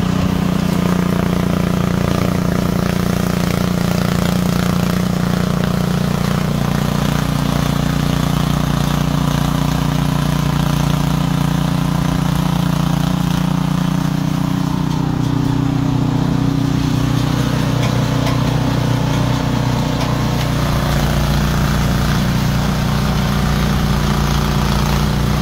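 Snow sprays out of a snow blower's chute.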